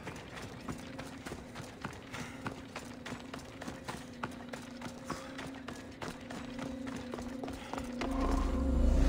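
Quick footsteps run over ground and stone steps.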